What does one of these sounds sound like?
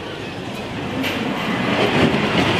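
A ride car rolls along a track nearby.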